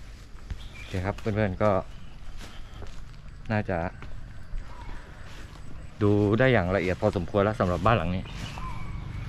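A young man speaks close to the microphone, muffled through a face mask.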